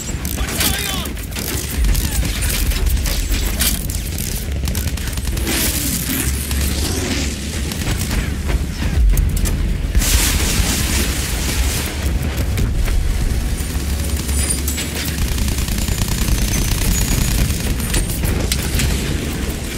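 Machine guns rattle in rapid bursts.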